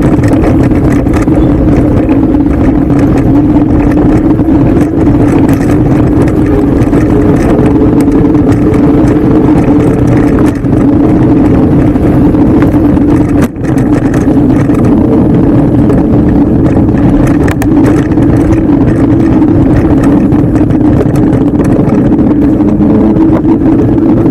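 Bike tyres rumble and crunch over a dirt trail.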